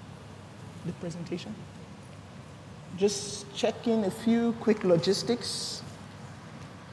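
A woman speaks into a microphone in a clear, measured voice.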